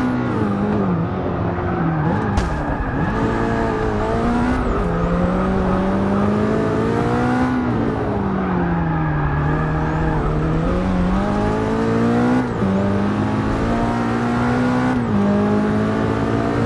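A racing car engine roars, revving up and down as gears shift.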